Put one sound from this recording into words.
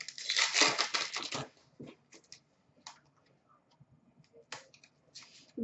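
Trading cards rustle and flick as hands sort through them.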